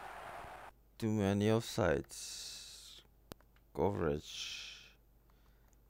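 Menu beeps chime in quick bursts.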